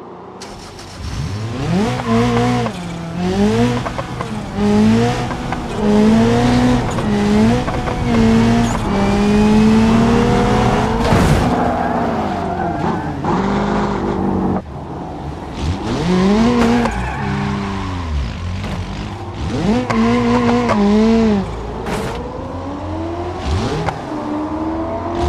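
A car engine revs hard, rising and falling as gears change.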